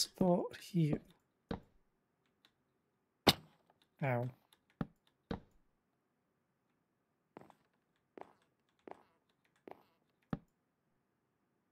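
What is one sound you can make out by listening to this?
Wooden blocks knock softly as they are placed one after another.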